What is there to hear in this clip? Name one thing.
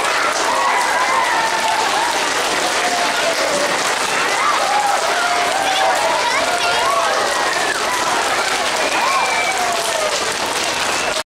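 A small school band plays along on brass and other instruments.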